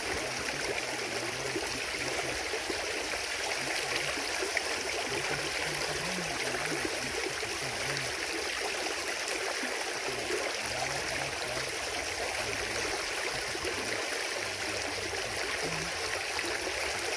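Water gushes and splashes steadily into a shallow pool close by.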